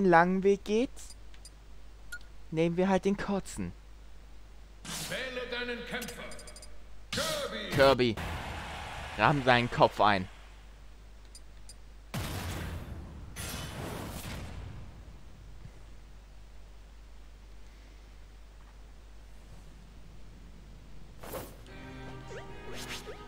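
Electronic game sound effects chime and whoosh.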